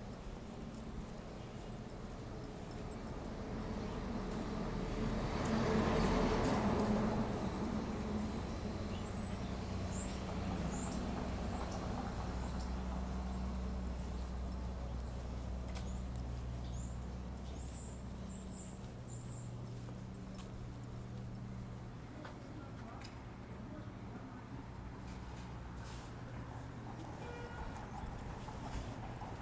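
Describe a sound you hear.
Traffic passes on a nearby city street.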